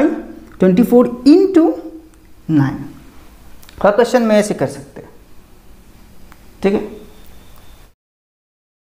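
A man explains calmly in short bursts, close by.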